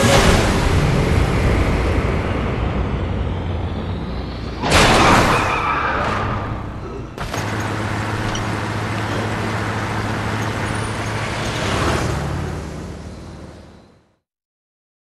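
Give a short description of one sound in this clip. A heavy vehicle's engine roars.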